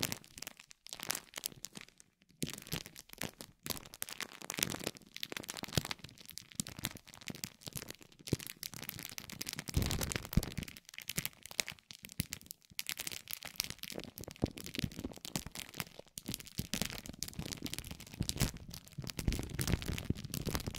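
A spiked metal roller crackles and crinkles over plastic film, very close.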